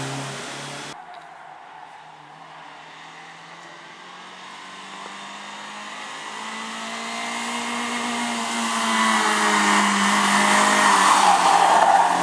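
A rally car engine drones far off and grows louder as the car approaches.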